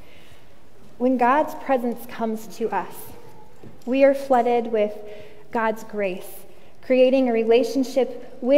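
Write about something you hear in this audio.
A woman reads aloud through a microphone in a large echoing hall.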